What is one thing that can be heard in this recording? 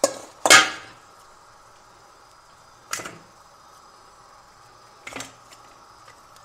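A metal bowl clanks and rings briefly.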